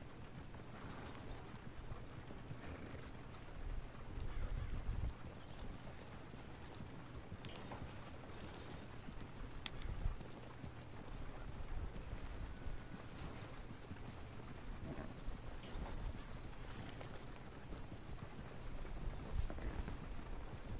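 Horse hooves clop steadily on soft ground.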